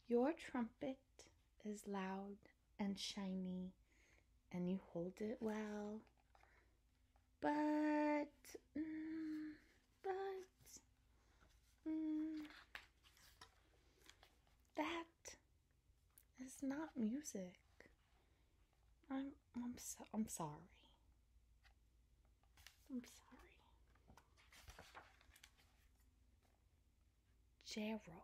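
A middle-aged woman reads aloud expressively close by, changing her voice.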